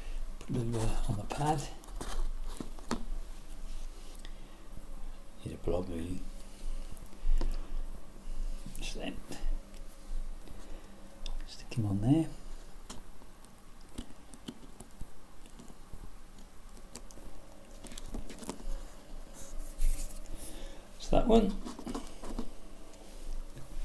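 Small wooden chair legs tap and scrape on a hard surface close by.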